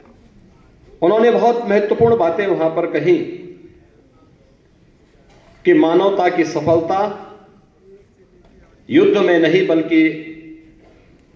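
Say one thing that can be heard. A middle-aged man speaks through a microphone in bursts, with pauses, his voice echoing in a large hall.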